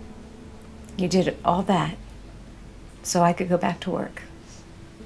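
A woman speaks calmly and warmly, close by.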